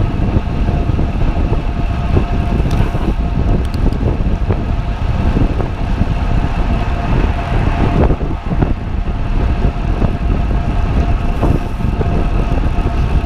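Bicycle tyres hum on smooth road.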